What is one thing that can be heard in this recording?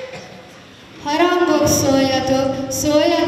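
A young girl sings into a microphone, heard through loudspeakers in a large echoing hall.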